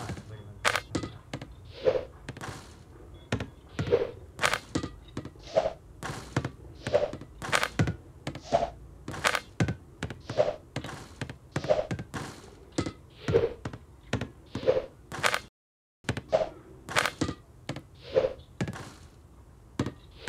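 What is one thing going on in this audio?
A basketball bounces and thuds repeatedly.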